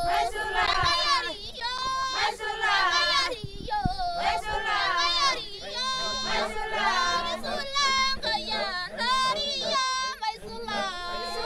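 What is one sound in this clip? A group of women sing together outdoors in a lively chant.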